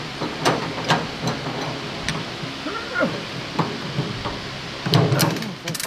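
Metal chain links clink and rattle.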